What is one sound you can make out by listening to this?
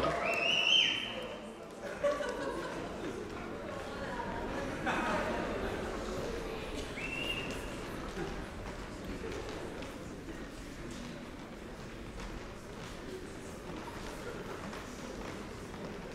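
A group of young women sing together in a large echoing hall.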